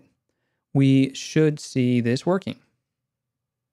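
A man speaks briefly and casually into a close microphone.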